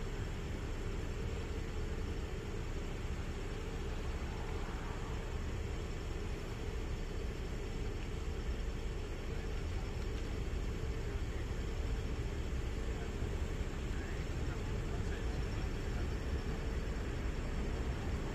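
A car engine idles nearby with a steady low rumble.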